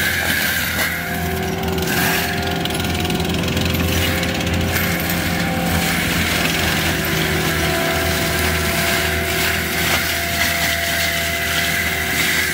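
A tracked loader's diesel engine roars steadily up close.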